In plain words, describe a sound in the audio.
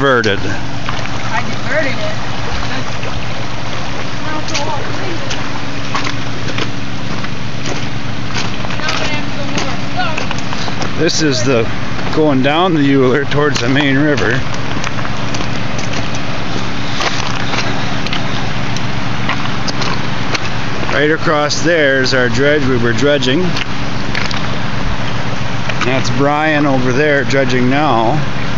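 Shallow river water ripples steadily over stones outdoors.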